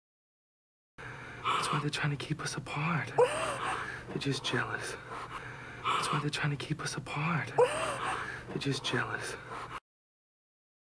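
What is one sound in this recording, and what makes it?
A man speaks quietly and intimately, close by.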